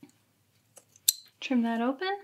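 Scissors snip a thread with a sharp click.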